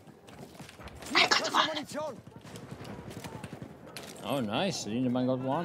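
Gunfire bursts out in quick shots.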